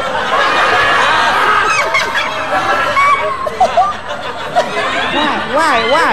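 A young woman cries out in a loud, whiny voice.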